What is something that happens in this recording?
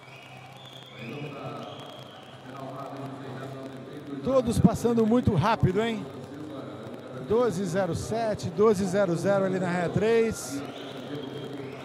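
A crowd cheers in a large echoing hall.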